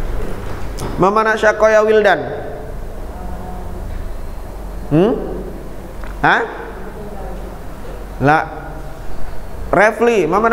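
A man speaks slowly and clearly into a microphone, in short drawn-out phrases with pauses.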